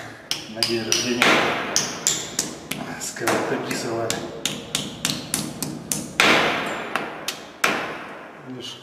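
A hammer taps repeatedly on a hard surface.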